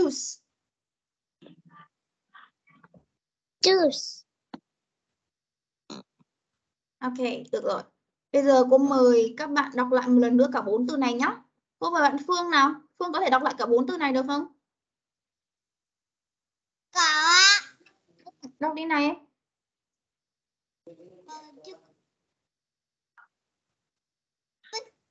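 A young boy repeats words over an online call.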